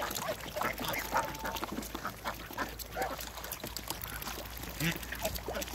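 Ducks quack and chatter softly close by.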